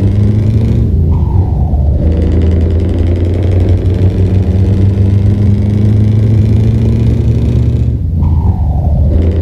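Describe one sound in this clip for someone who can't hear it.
A truck engine drops in pitch briefly as gears shift.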